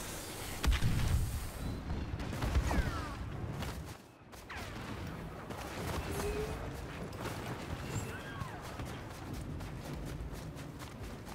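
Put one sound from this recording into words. Explosions boom and rumble all around.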